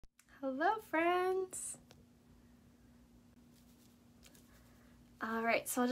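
A young woman talks close up.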